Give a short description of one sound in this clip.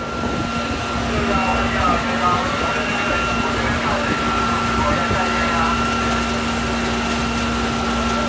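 Men talk and call out at a distance.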